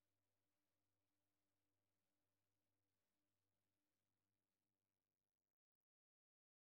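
A man plays an electric guitar.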